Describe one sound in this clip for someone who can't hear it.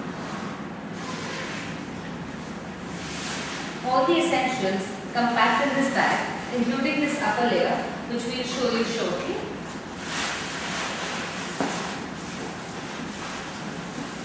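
Nylon fabric rustles as a bag is handled.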